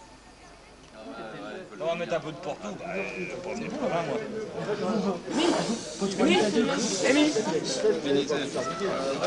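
Men talk and laugh loudly close by.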